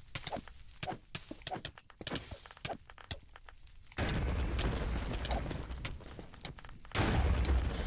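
Blocks break with crunching clicks.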